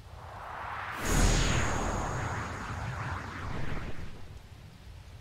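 A magic blast bursts with a loud rushing roar that slowly fades.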